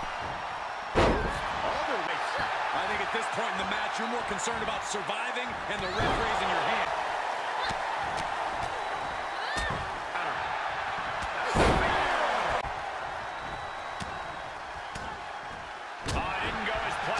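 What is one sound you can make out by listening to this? Bodies slam hard onto a wrestling ring mat.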